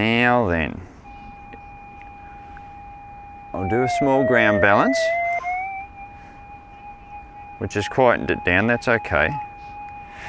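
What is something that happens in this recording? A metal detector hums with a steady, slightly wavering tone.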